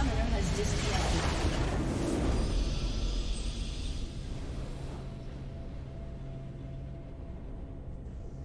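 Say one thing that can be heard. A triumphant game fanfare swells with a bright magical whoosh, then fades.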